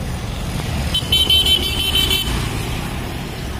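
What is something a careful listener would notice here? A motorcycle engine roars as it passes close by.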